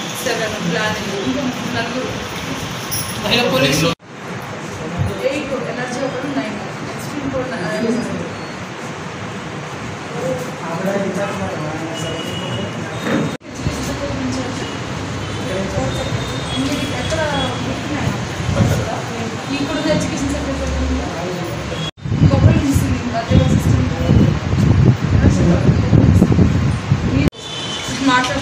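A woman speaks firmly at close range.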